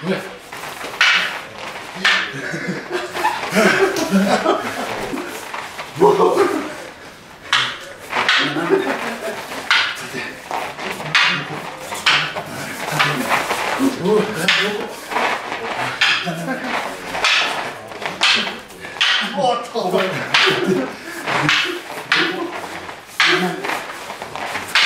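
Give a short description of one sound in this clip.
Wooden staffs clack sharply against each other.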